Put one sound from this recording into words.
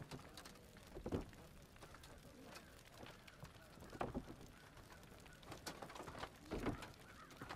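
Heavy armoured footsteps thud and clank on the ground.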